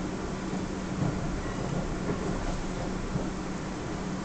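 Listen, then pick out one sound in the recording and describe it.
Train wheels clatter over rail points.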